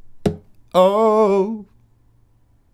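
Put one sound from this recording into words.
A man sings a short, wavering note close to a microphone.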